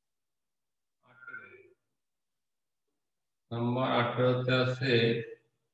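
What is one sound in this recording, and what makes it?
A man speaks clearly and close by, as if teaching.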